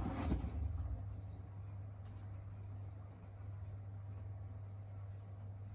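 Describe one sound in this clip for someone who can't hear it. Wet laundry tumbles and thuds softly inside a washing machine drum.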